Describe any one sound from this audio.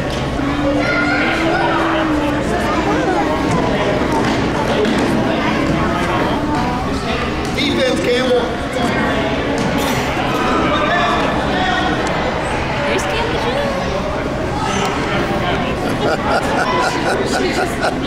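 Young children chatter and shout in a large echoing hall.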